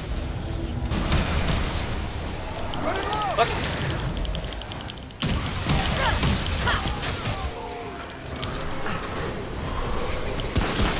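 Heavy blows strike with hard thuds.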